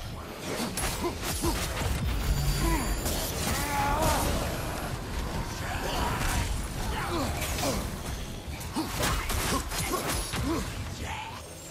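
Fiery blasts burst with a loud whoosh.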